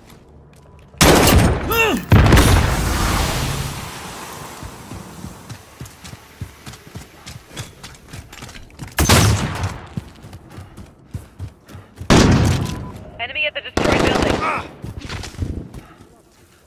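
Loud gunshots and explosions boom in an echoing tunnel.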